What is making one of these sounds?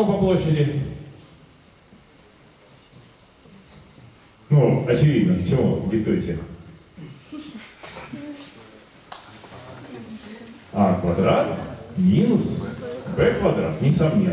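A man speaks with animation through a microphone in a room with a slight echo.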